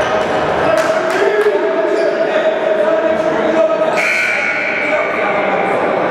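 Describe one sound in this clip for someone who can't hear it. A man shouts instructions in a large echoing gym.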